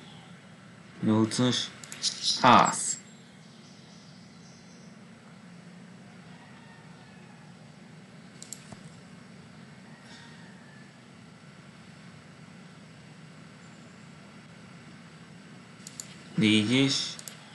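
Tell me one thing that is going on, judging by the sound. A woman speaks briefly and calmly into a microphone.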